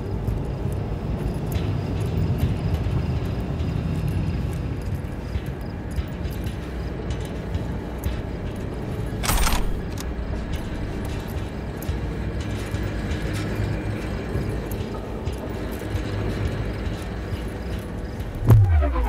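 Footsteps clank softly on a metal walkway.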